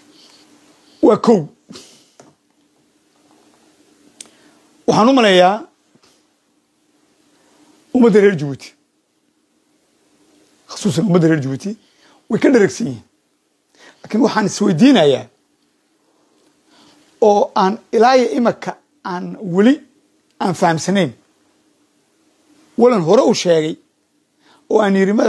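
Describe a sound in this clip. A middle-aged man speaks with animation over an online call, in short bursts with pauses.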